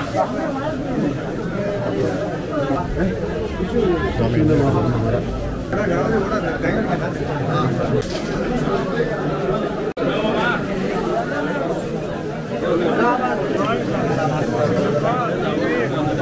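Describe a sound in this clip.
A crowd of men and women talks and murmurs close by.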